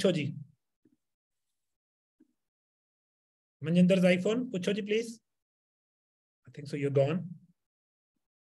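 A man speaks calmly in short phrases through an online call.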